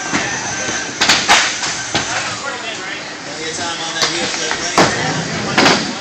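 Skateboards clack and slap loudly against wood, echoing in a large hall.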